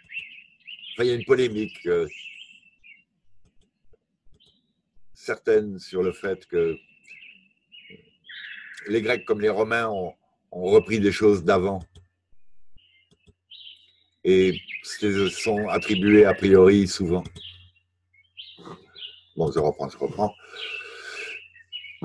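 A man talks calmly into a microphone, in short phrases with pauses.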